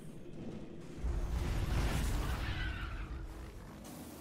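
A metal ball rolls along with a deep rumbling hum.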